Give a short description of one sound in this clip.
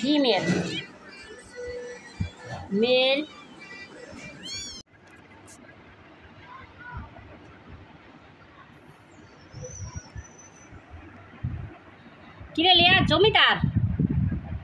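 Kittens mew with high, thin cries.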